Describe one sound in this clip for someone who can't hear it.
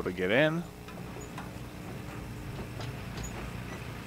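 Boots clank on a metal grating.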